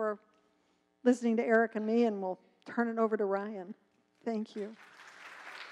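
An older woman speaks with feeling into a microphone.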